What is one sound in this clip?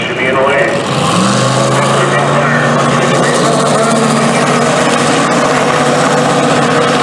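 A V8 drag-racing car engine revs up and holds at a high rumble.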